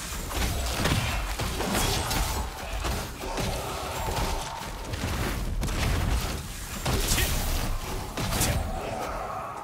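Weapons strike with sharp impacts.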